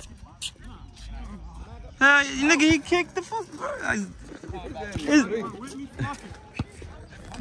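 A basketball bounces on pavement.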